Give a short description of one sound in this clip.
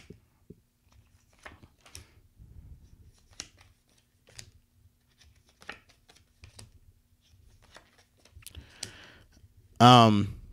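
Playing cards are shuffled with soft flicks and taps.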